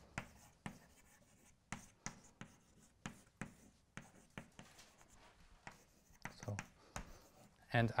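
Chalk taps and scrapes sharply on a blackboard.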